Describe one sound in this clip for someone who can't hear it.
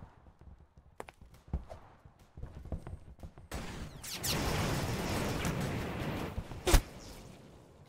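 A sniper rifle fires sharp, loud single shots.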